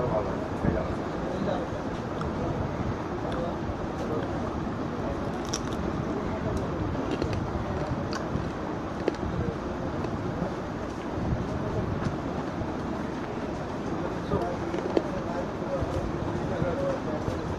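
Fingers squelch in a thick sauce.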